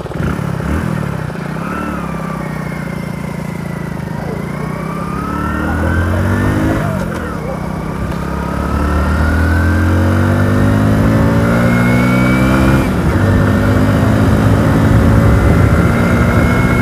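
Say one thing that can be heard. A motorcycle engine hums steadily and rises and falls in pitch as the rider shifts gears.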